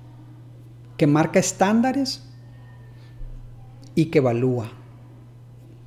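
A man speaks calmly and close to the microphone, in short phrases with pauses.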